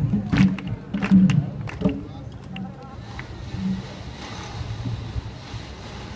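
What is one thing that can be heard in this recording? Drums are beaten with sharp hits outdoors.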